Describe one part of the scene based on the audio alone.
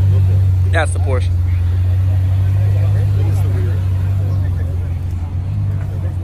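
Men talk casually nearby in an outdoor crowd.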